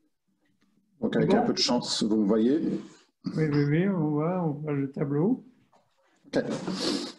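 A middle-aged man speaks calmly over an online call.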